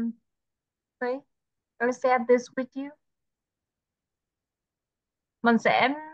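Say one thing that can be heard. A young woman speaks calmly and close by through an online call, in short bursts with pauses.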